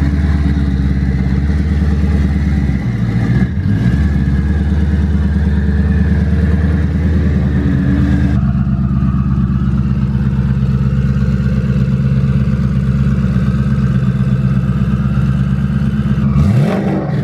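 A car engine idles with a deep, lumpy rumble throughout.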